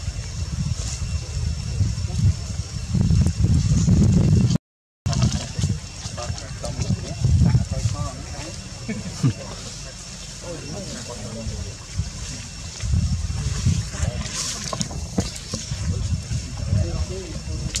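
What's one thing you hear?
Leaves rustle as monkeys move through undergrowth.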